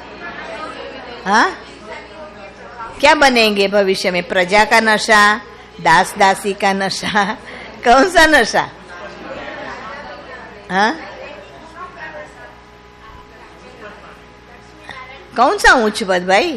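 An elderly woman speaks calmly into a microphone, with pauses between phrases.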